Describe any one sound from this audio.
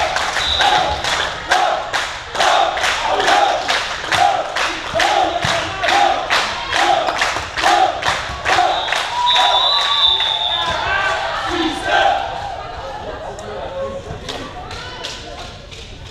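A volleyball is struck repeatedly with sharp slaps in a large echoing hall.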